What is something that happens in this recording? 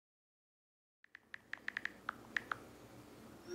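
Phone keyboard keys click quickly as a message is typed.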